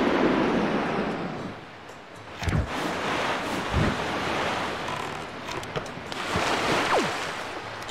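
Water rushes under a moving sailboat.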